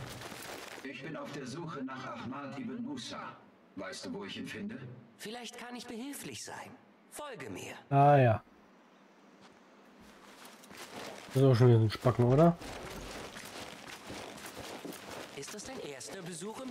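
A man's voice from a game speaks calmly.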